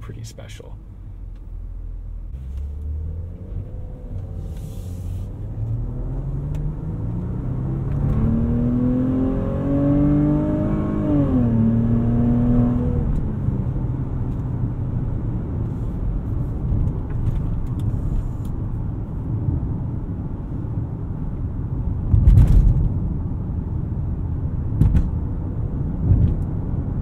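Tyres roar steadily on the road from inside the car.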